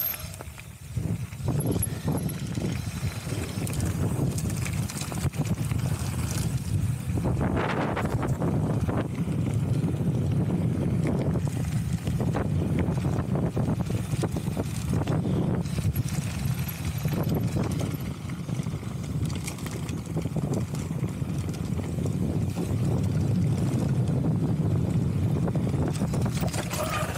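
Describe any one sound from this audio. Bicycle tyres crunch and rumble over loose gravel.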